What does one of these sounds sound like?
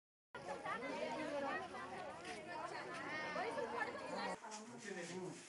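A crowd of women and men talk over one another outdoors.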